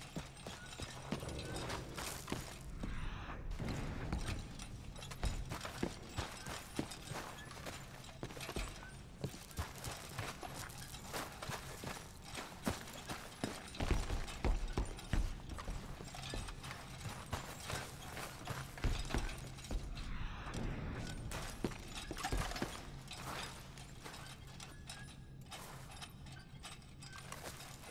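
Footsteps crunch steadily on a gravel and dirt floor.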